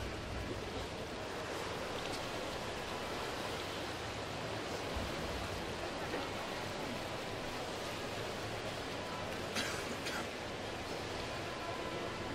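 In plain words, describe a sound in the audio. Swimmers splash steadily through the water in a large echoing hall.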